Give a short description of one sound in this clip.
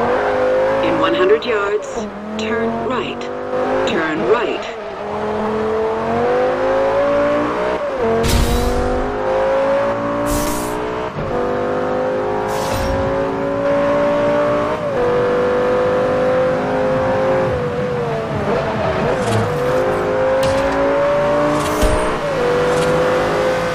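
A sports car engine roars loudly, revving up and dropping briefly as the car shifts gears.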